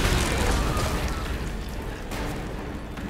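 A fire roars and crackles.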